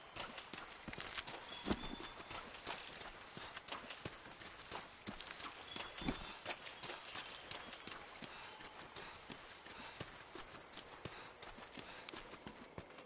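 Footsteps hurry over rough ground.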